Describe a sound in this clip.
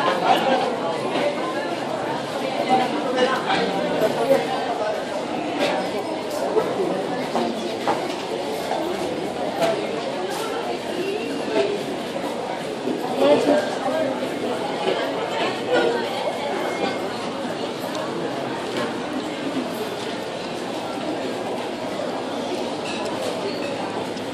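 Footsteps shuffle and tap on a hard floor.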